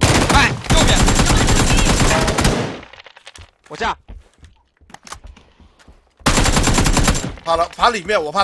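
An automatic rifle fires in rapid bursts, loud and close.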